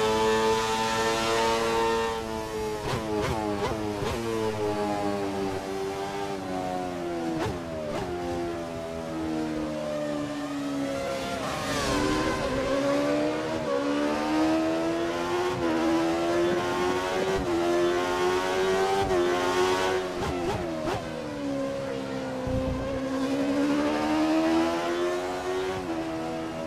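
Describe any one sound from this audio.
A racing car engine screams, rising and falling in pitch as it revs up and shifts down through the gears.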